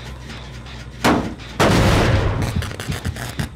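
A heavy metal machine is struck with a loud clank.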